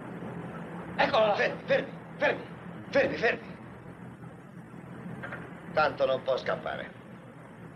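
A man speaks loudly outdoors.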